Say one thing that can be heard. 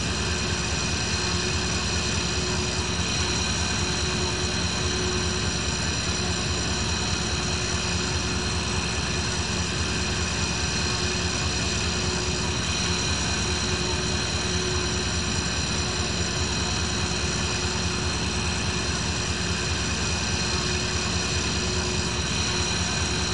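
A parked jet airliner's auxiliary engine whines and hums steadily.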